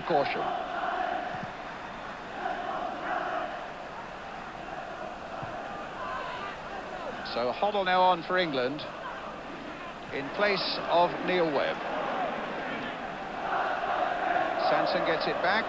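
A large crowd murmurs and roars in an open stadium.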